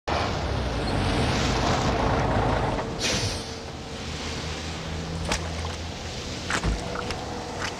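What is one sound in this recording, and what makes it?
A heavy truck engine rumbles close by.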